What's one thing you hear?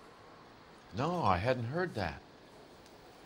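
A middle-aged man answers in a gruff voice.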